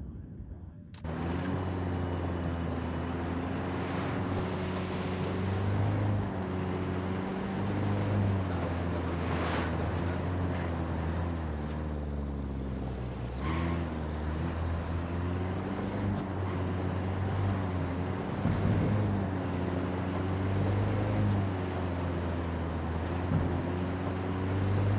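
A van engine hums steadily and rises and falls in pitch as it drives.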